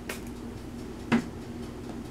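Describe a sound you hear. A plastic bottle clicks as a hand picks it up.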